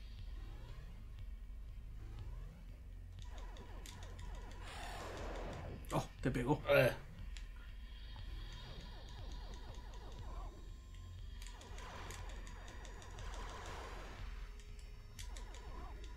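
Video game music and sound effects play throughout.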